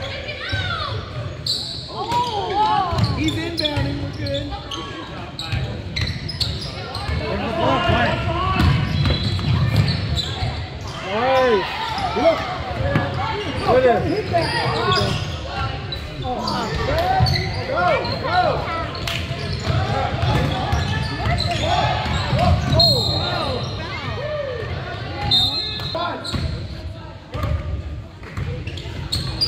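Spectators chatter and call out in an echoing gym.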